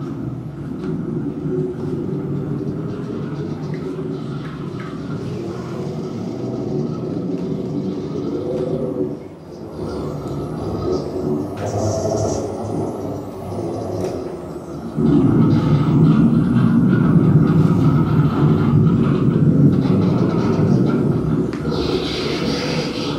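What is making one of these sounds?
Electronic music plays through loudspeakers, with a dense, droning texture that suddenly swells louder.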